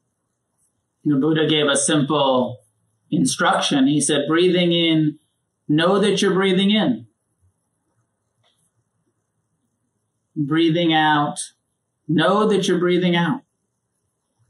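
A middle-aged man speaks slowly and calmly into a close microphone, with long pauses.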